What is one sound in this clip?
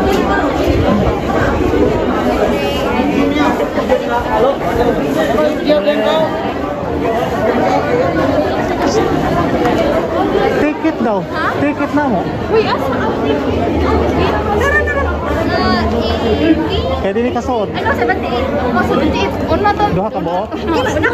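A crowd of young people chatters and talks all around, close by.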